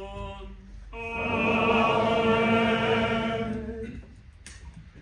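A congregation sings a short response together.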